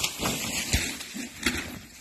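Bicycle tyres crunch through dry leaves.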